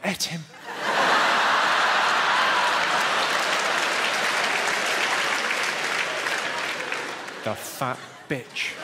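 A large audience claps.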